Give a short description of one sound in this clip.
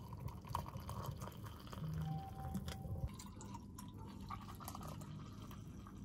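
Hot liquid pours from a kettle into a mug with a gurgling splash.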